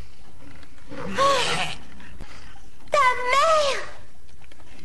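A young woman cries out in fear, close by.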